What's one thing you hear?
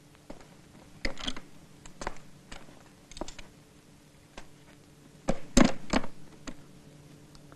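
Wooden objects knock and clatter close by.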